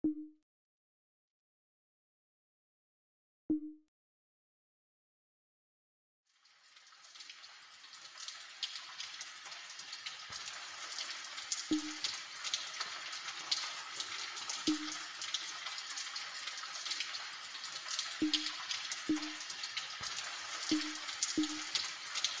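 Short electronic beeps sound now and then.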